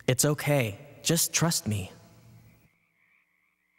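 A young man speaks tensely up close.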